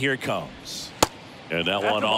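A baseball pops sharply into a catcher's mitt.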